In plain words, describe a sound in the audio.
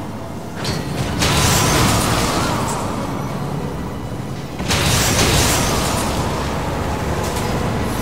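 Explosive blasts and magic bursts crackle loudly.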